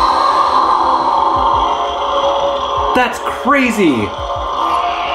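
A toy lightsaber hums steadily.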